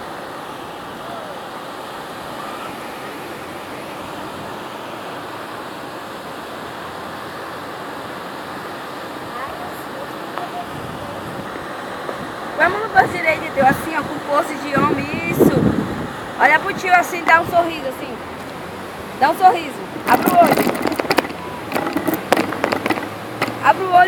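Waves break and wash onto a shore with a steady rush.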